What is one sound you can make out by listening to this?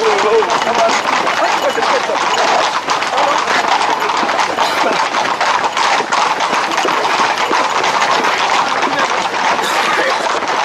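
A crowd of men shout and call out excitedly close by.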